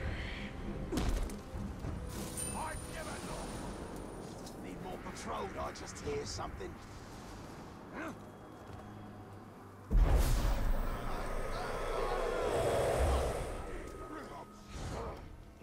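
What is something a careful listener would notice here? Blows and blade strikes land hard in a fight.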